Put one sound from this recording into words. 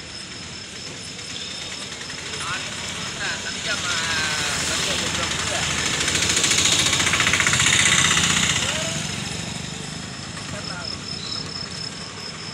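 A crowd of people chatter outdoors at a distance.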